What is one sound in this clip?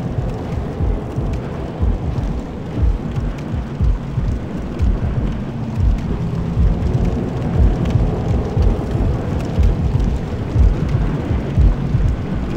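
Heavy armored footsteps thud quickly on stone.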